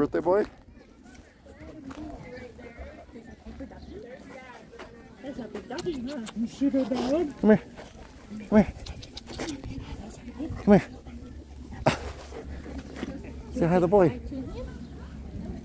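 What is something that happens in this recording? Children talk and call out nearby, outdoors.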